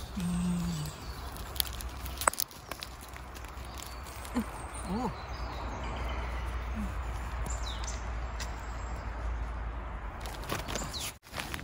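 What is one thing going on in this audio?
Gloved hands rustle as they handle mushrooms.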